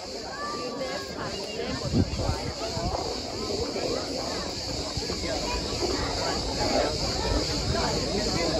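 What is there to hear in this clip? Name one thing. A horse's hooves clop on the road, drawing closer.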